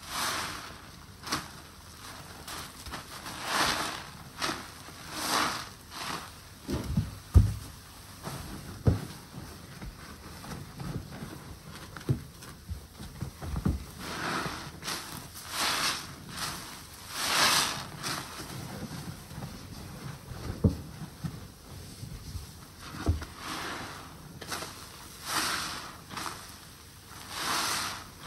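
Soapy water squelches and slops as a sponge is squeezed, close by.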